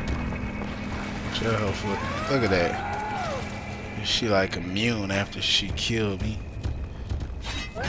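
A monster growls and snarls.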